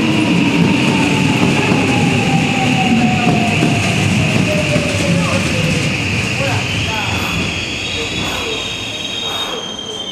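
A train rumbles slowly out of the station.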